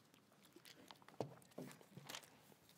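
A plastic bottle crinkles and clunks down close by.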